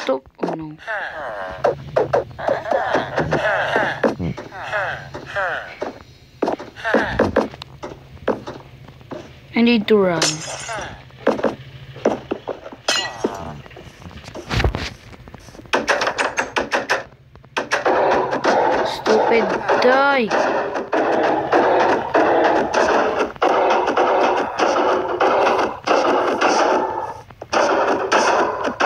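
A young boy talks with animation close to a phone microphone.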